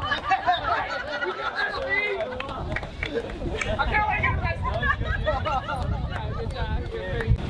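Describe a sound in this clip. Several people chatter and talk together nearby, outdoors.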